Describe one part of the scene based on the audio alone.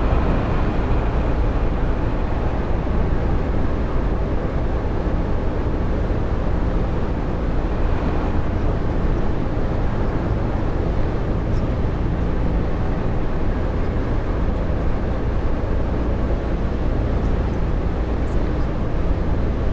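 A bus engine hums steadily with a low drone.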